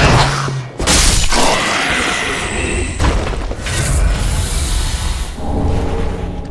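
A sword slashes and strikes a body.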